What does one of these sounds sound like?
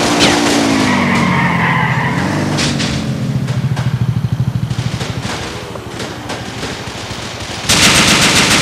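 A motorcycle engine revs and drones.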